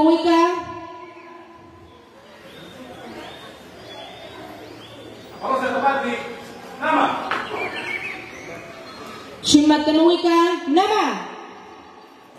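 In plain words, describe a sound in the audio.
A man calls out loudly outdoors.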